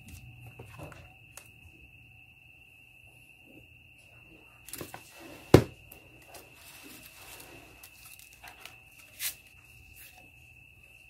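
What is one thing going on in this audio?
Hands handle a stiff box and cardboard with knocks and scrapes.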